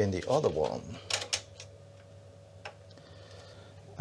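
Small plastic clicks and knocks come as hands handle a disk drive.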